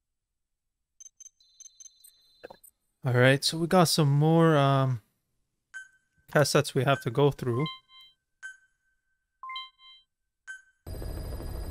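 Short electronic chimes and beeps sound from a game menu.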